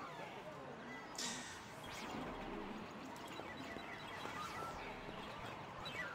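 Electronic game music plays.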